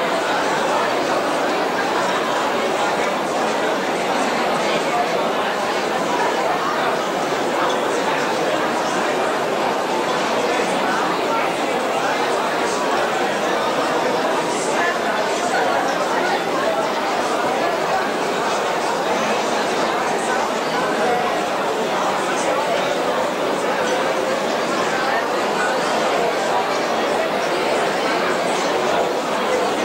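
A large crowd chatters and murmurs steadily.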